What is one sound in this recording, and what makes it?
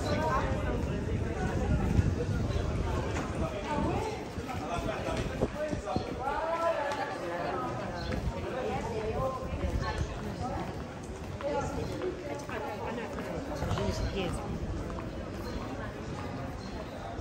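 Men and women chat nearby outdoors.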